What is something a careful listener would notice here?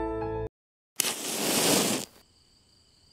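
A match is struck and flares up.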